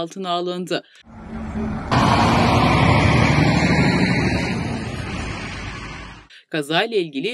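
A heavy truck rolls past close by with a loud rushing roar.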